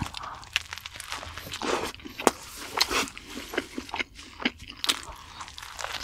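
A young man chews food loudly and wetly close to a microphone.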